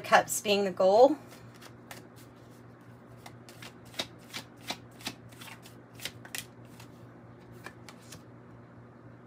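Playing cards riffle and tap softly as they are shuffled.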